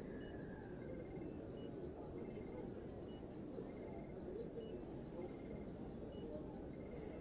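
Soft electronic tones blip in a steady, repeating pattern.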